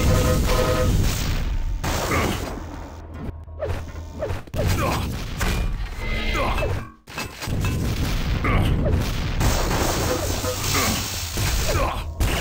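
An electric beam weapon crackles and buzzes in bursts.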